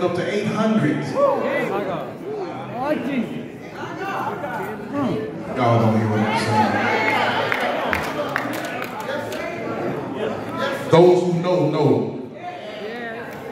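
A man sings with passion through a microphone and loudspeakers in an echoing hall.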